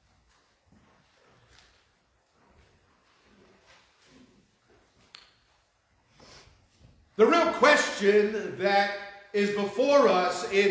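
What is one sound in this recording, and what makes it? A middle-aged man speaks into a microphone, softly at first and then much louder.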